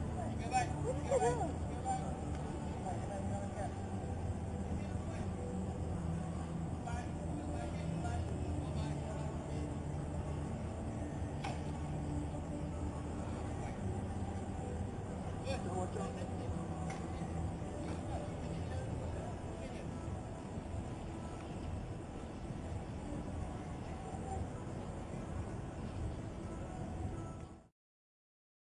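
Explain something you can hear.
A murmur of people and outdoor bustle carries on throughout.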